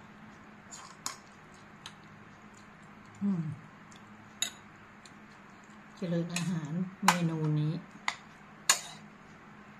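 A spoon clinks against a bowl.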